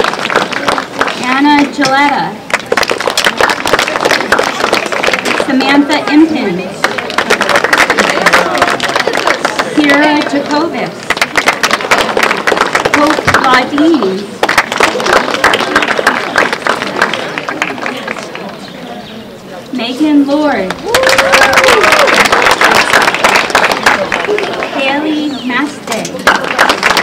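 A young woman speaks into a microphone over loudspeakers, reading out names outdoors.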